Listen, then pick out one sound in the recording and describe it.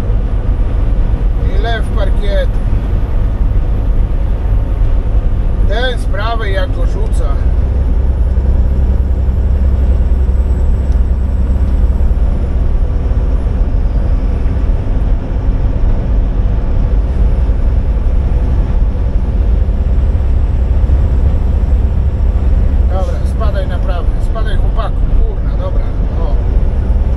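A vehicle's engine hums with a low, steady road rumble from inside the cab.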